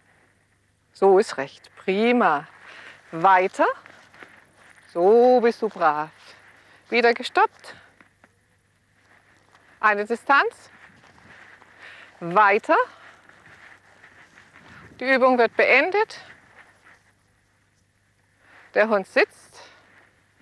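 A woman speaks in short, lively bursts outdoors.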